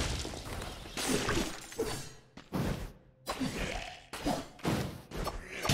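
Enemies burst apart with squelching splatters.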